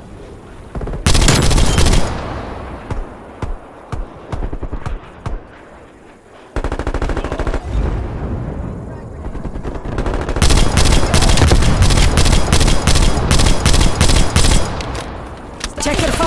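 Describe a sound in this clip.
Rifle shots fire in quick, loud bursts.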